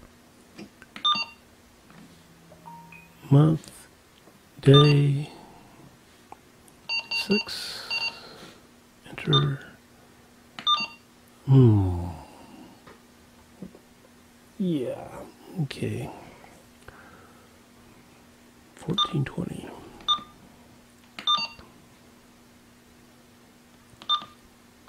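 A handheld radio beeps in short tones as its buttons are pressed.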